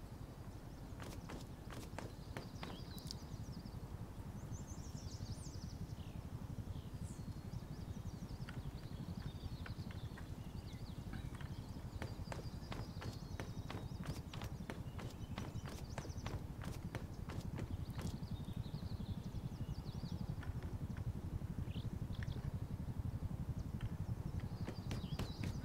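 Footsteps crunch through dry grass and straw.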